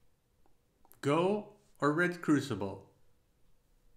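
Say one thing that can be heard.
A man speaks briefly and clearly into a close microphone.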